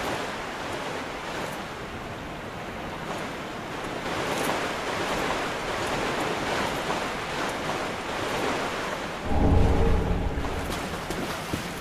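Water splashes steadily underfoot.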